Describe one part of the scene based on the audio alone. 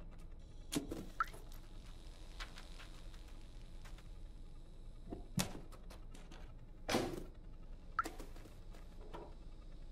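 A small robot taps and clicks as it moves across a hard floor.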